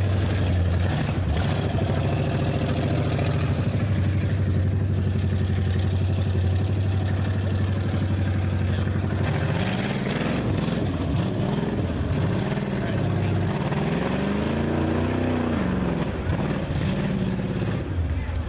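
Tyres churn and splash through mud.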